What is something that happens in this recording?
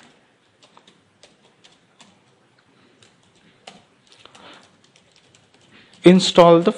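Keyboard keys click softly in quick, uneven taps.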